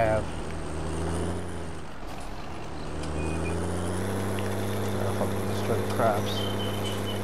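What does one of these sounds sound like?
A tractor engine drones steadily, shifting pitch slightly as it drives.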